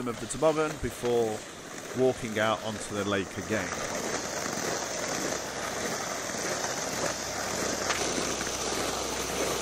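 Sleds scrape and hiss over snow.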